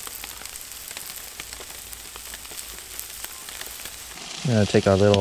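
Food sizzles and crackles on a hot grill.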